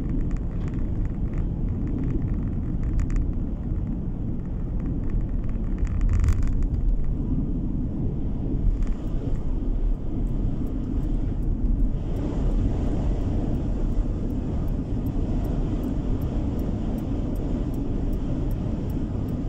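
Tyres roll steadily over asphalt.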